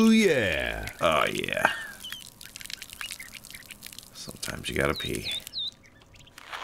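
A stream of liquid splashes steadily onto dry ground.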